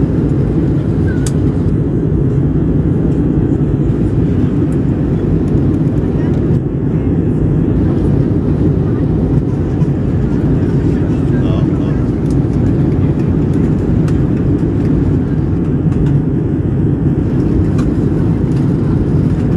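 A jet engine roars steadily, heard from inside an airliner cabin.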